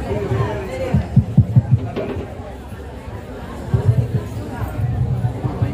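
Low bumps and thuds sound close by.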